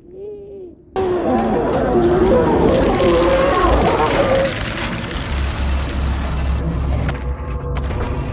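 A monstrous creature lets out loud, shrieking screeches.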